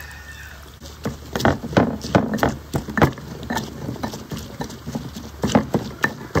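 A stone pestle pounds and grinds in a stone mortar.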